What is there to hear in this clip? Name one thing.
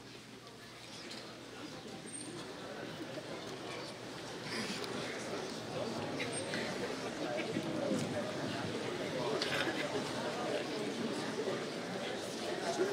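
A crowd murmurs and applauds in a large hall.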